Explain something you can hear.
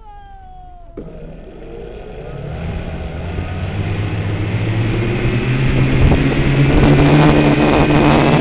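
A small propeller motor whirs and grows louder.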